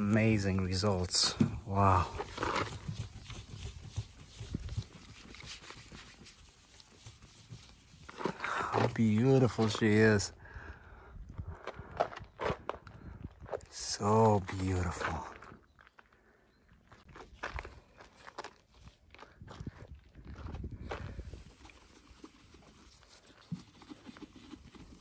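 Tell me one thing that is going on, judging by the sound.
A cloth rubs softly over a car's paint.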